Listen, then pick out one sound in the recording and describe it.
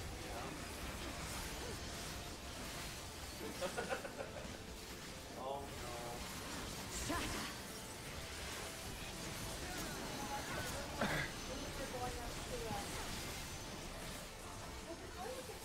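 Magic effects whoosh and chime in a game.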